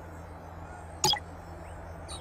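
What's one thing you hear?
A game menu gives a short, sharp click as it switches.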